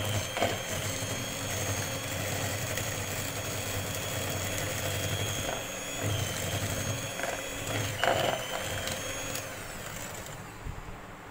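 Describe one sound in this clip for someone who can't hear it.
An electric hand mixer whirs steadily, then stops.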